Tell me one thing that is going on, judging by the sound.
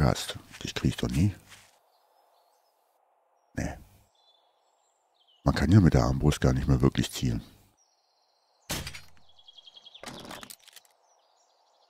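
A crossbow fires with a sharp twang.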